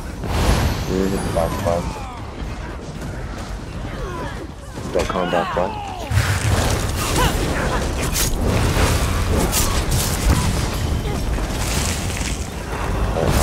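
Magic spells crackle and burst in a fight.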